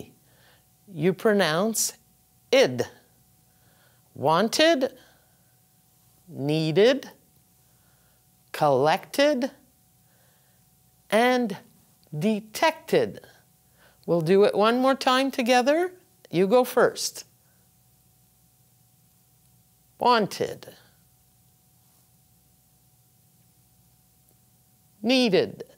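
An older woman speaks slowly and clearly into a close microphone, pausing between words.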